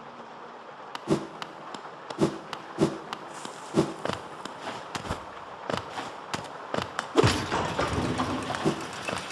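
Light footsteps tap quickly on a hard floor.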